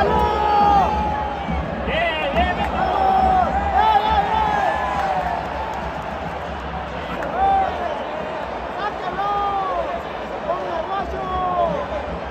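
Nearby fans shout excitedly.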